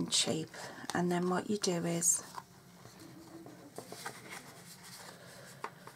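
Paper cards slide and rustle softly on a table.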